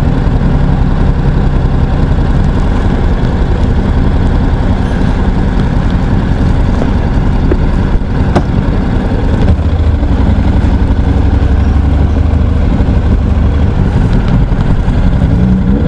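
A motorcycle engine rumbles steadily close by.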